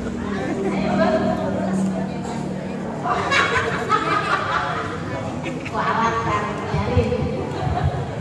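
A woman speaks with animation through a microphone over loudspeakers.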